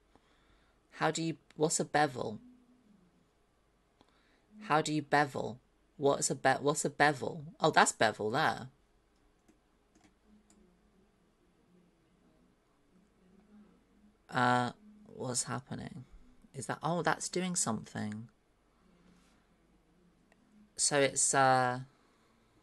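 A young woman talks casually into a close microphone, in bursts with pauses.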